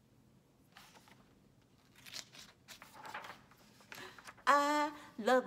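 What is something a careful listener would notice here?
Paper pages rustle as a book is opened and turned.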